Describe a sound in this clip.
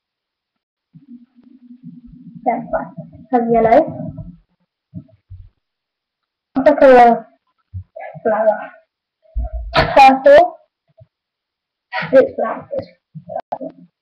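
A young girl talks calmly close to a microphone.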